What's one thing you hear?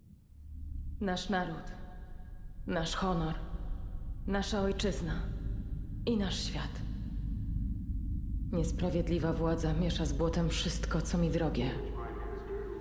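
A woman speaks slowly and solemnly, close by.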